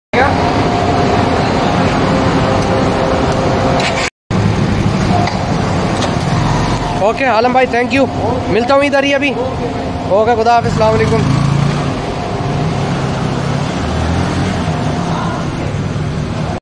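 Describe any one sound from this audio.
A motorcycle engine idles and rumbles steadily.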